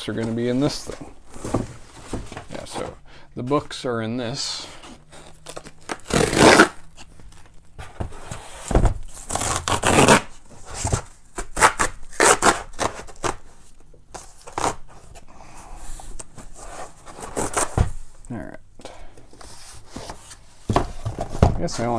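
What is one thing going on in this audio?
Cardboard rustles and crinkles as a box is opened.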